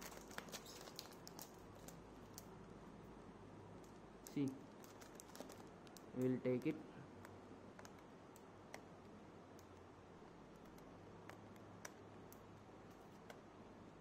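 A plastic film crinkles and crackles under fingers.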